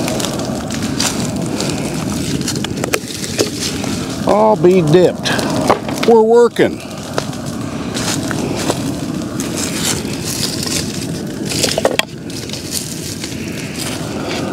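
A brush fire crackles.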